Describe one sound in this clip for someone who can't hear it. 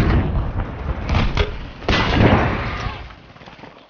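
A vehicle explodes with a deep boom.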